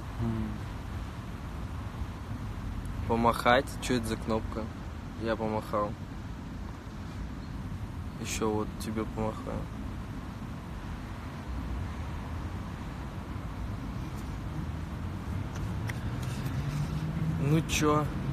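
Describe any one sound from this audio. A young man speaks casually and close to a phone microphone, with pauses.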